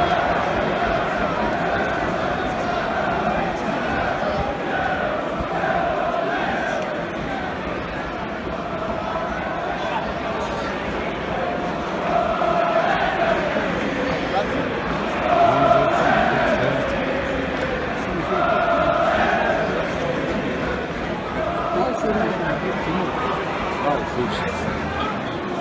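A large stadium crowd sings and chants loudly in unison.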